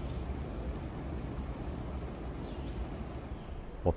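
Eggs sizzle in a frying pan.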